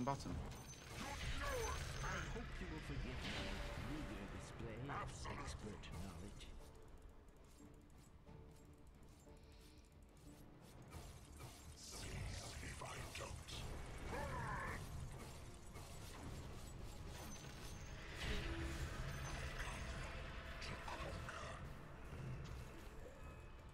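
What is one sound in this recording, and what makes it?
Battle sound effects clash and whoosh from a video game.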